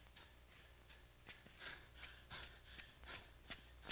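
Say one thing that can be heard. Footsteps run across hard dirt, coming closer.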